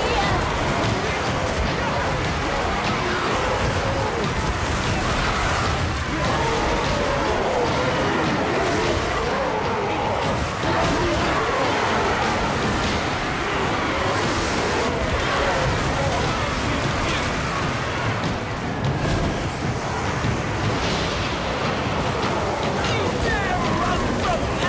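A huge army clashes in battle with a constant roar and clatter.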